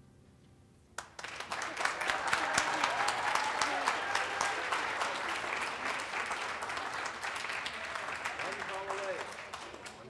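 A group of young women and men sings together in a large echoing hall.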